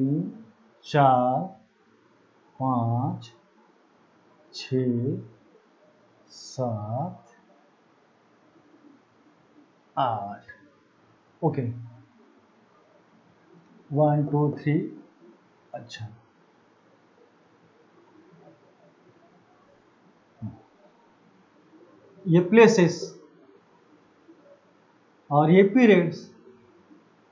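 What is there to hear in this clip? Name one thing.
A man speaks slowly in short phrases, close by.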